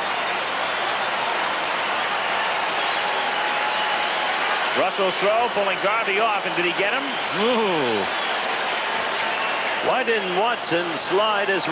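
A large crowd roars and cheers in a stadium.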